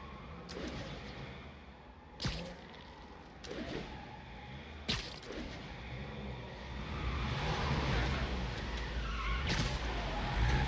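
Webs shoot out with sharp snapping thwips.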